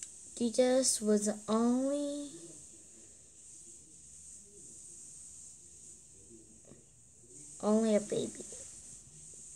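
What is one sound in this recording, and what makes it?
A young girl sings softly, heard through an online call.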